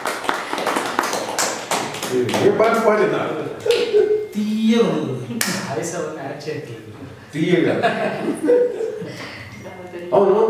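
Several people laugh together.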